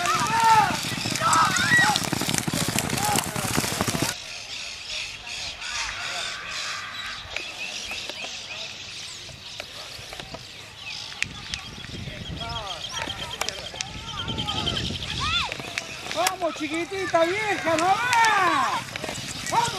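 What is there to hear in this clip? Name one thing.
Horses gallop with hooves pounding on a dirt track.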